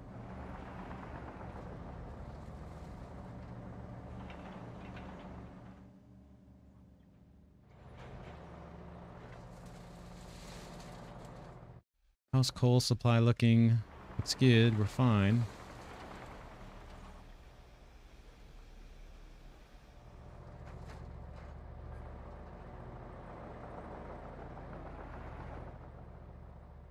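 An excavator engine rumbles steadily while digging.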